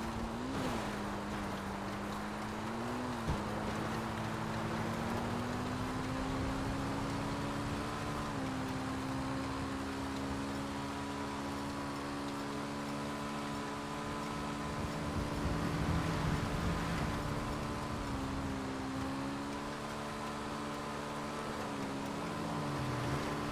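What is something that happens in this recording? A motorcycle engine hums steadily, its pitch rising and falling as the rider speeds up and shifts gears.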